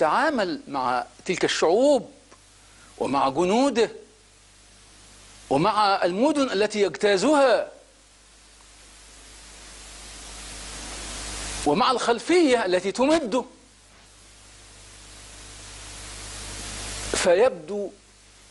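A middle-aged man speaks emphatically into a close microphone, with pauses.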